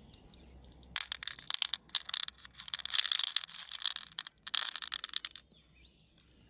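Small glass beads clatter and rattle into a shell.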